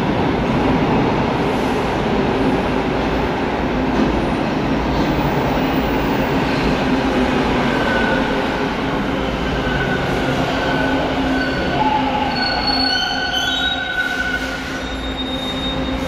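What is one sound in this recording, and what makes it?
A subway train rumbles into an echoing underground station.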